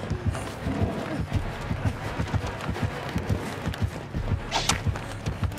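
Footsteps thud quickly and steadily on soft ground.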